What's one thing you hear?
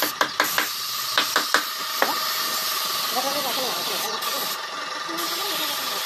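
A spray gun hisses steadily, with short breaks.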